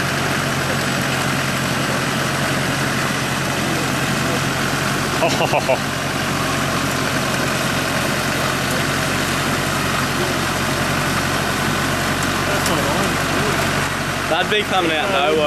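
An engine rumbles steadily.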